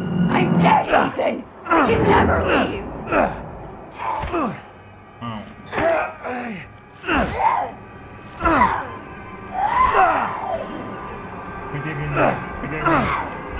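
A woman screams and snarls.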